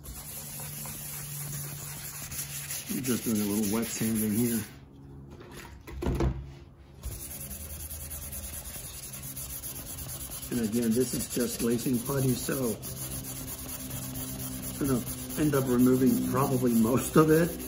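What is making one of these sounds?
Gloved hands rub and brush across a rough panel surface.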